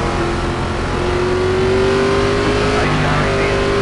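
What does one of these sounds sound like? A race car engine revs up as it accelerates.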